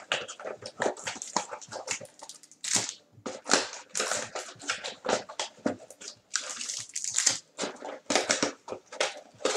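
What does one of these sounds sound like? Plastic card wrappers crinkle and rustle.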